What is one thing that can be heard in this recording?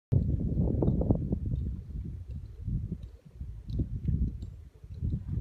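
Wind gusts outdoors and rumbles against the microphone.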